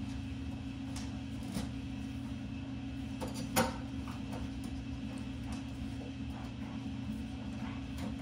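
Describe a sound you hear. A dog licks and snuffles at food in a plastic tray, with small clicks and knocks.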